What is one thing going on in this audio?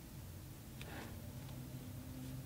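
A paintbrush clicks against a plastic paint pan.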